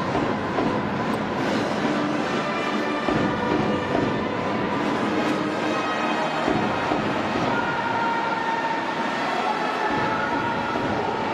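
A large crowd cheers and chants in a stadium.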